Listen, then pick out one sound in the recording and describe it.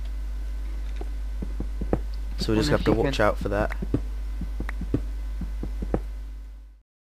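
A pickaxe chips at stone in quick, dull knocks.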